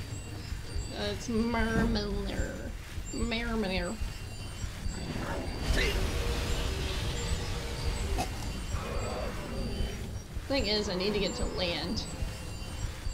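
A young woman talks casually into a microphone.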